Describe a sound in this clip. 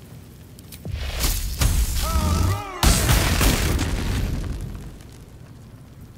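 Lightning crackles and booms loudly in a burst.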